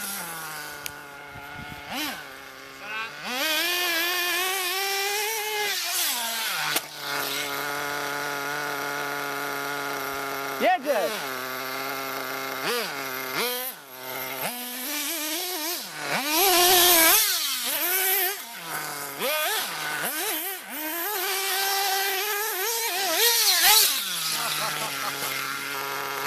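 A small model car engine whines and revs up and down.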